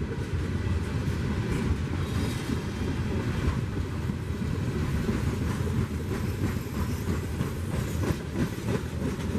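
A long freight train rumbles steadily past, close by.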